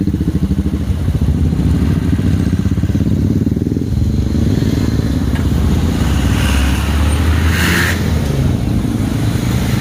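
A motor scooter engine idles close by.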